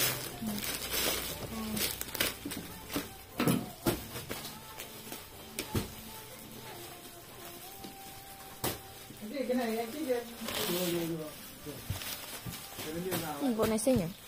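Cloth rustles as it is unfolded and smoothed.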